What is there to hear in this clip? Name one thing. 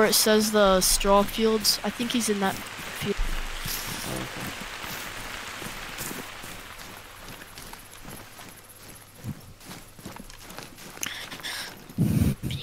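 Footsteps rustle through dry grass and low plants.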